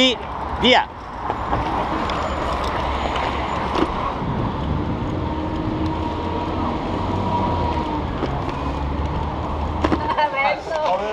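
Wind rushes past a moving bicycle.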